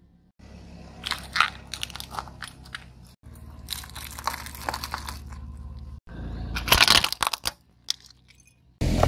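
Plastic toys crackle and crunch under a rolling car tyre.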